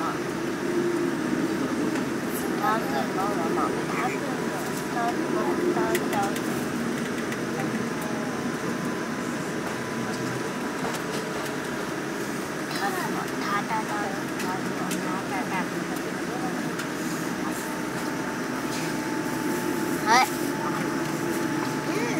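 A jet engine roars steadily, heard from inside an aircraft cabin.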